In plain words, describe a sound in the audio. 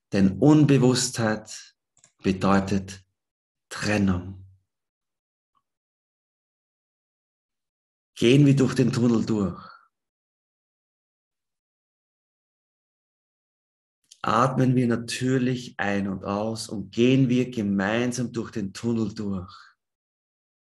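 A young man speaks calmly and slowly into a microphone over an online call, with long pauses.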